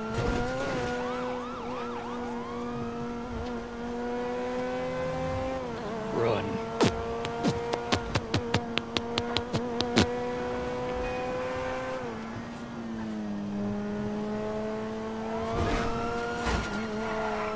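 A car engine hums steadily, its pitch shifting as the car speeds up and slows down.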